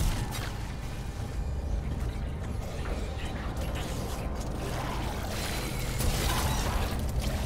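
A deep mechanical rumble drones steadily.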